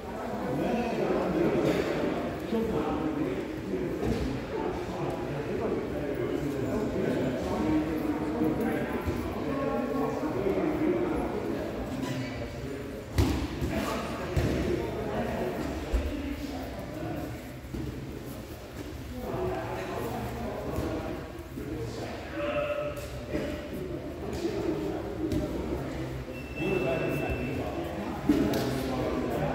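Several men talk in a large echoing hall.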